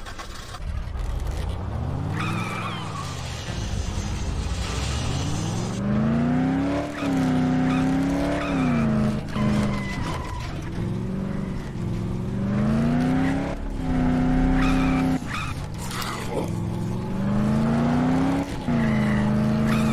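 A car engine revs up and down as the car drives along.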